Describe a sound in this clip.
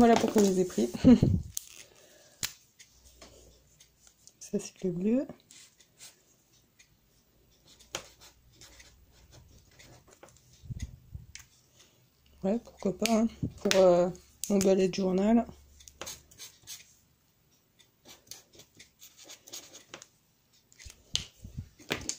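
A pen cap clicks on and off.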